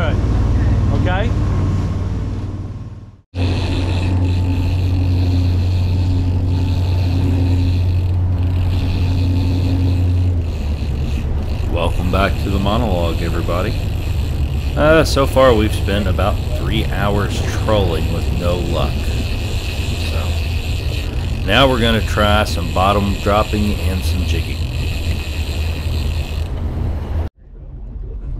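A boat engine rumbles steadily.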